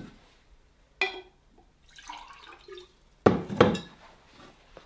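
Glass clinks against glass.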